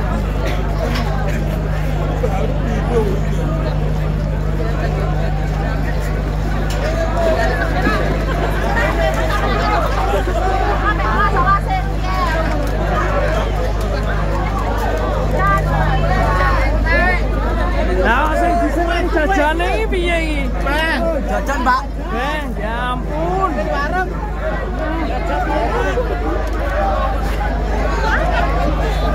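Heavy bass music booms from large loudspeaker stacks.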